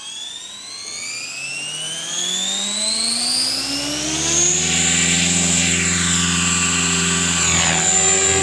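A model helicopter's engine whines, rising steadily in pitch as it spools up.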